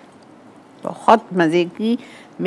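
An elderly woman speaks calmly nearby.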